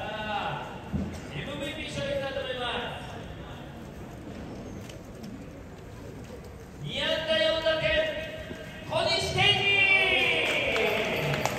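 A man speaks with animation into a microphone, heard through loudspeakers outdoors.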